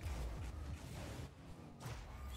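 A ball is struck with a loud thump.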